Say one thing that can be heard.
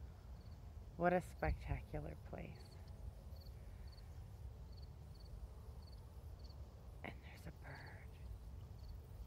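A middle-aged woman speaks calmly close to the microphone.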